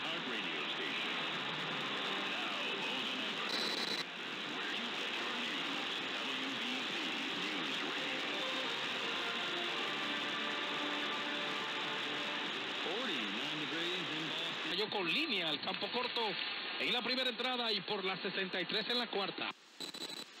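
A radio receiver hisses with static while tuned to a distant station.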